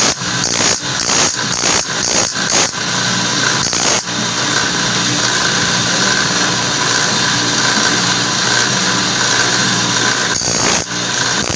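A grinding wheel whines steadily as a metal blade is pressed against it.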